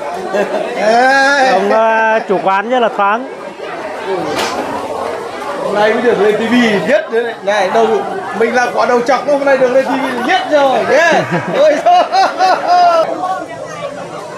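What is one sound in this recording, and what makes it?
A middle-aged man talks loudly and cheerfully close by.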